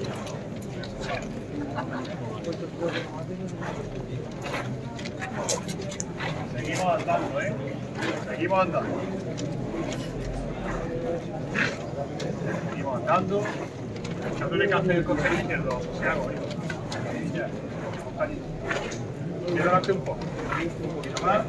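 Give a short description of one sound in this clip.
A crowd of men murmurs and talks nearby.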